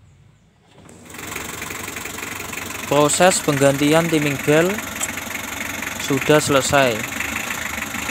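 An engine idles.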